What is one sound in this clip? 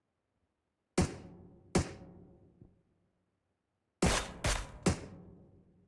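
Sniper rifle shots crack sharply, a few times.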